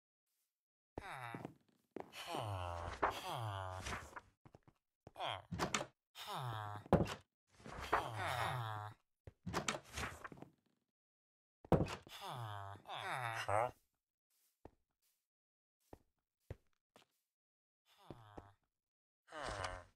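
A video game villager makes nasal grunting murmurs.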